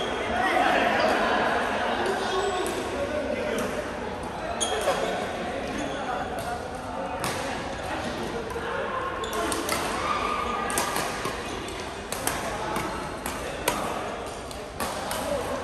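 Badminton rackets smack shuttlecocks in sharp, repeated pops.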